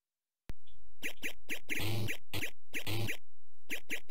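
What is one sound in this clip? Beeping retro arcade game sounds play in quick bursts.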